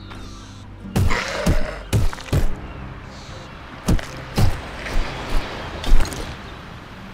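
A sword strikes with sharp, heavy blows.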